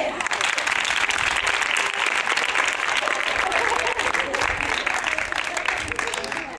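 A small group of people clap their hands steadily outdoors.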